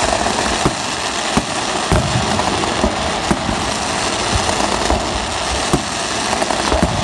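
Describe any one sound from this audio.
Fireworks fountains hiss and spray sparks.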